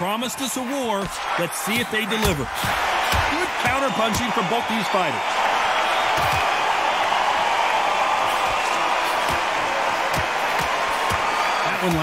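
Boxing gloves thud against a body.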